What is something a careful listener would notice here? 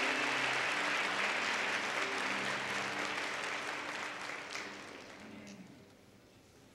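An orchestra holds soft, sustained low notes.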